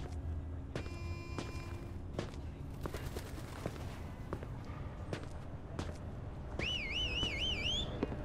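Footsteps tap on hard stairs.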